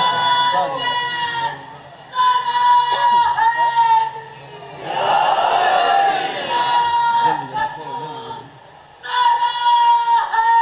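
A young man chants loudly into a microphone in long, drawn-out phrases.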